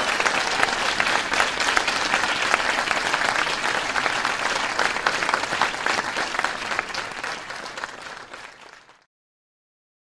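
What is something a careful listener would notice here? A large crowd cheers loudly and then fades away.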